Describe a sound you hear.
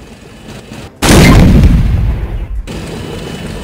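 A heavy blast booms and fades.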